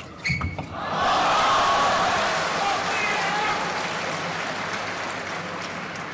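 A crowd cheers and applauds loudly in a large hall.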